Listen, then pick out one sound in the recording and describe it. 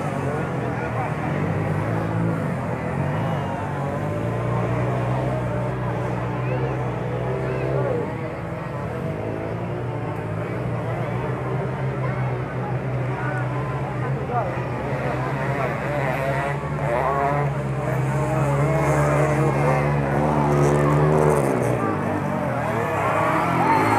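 A large crowd of men, women and children chatters and calls out outdoors.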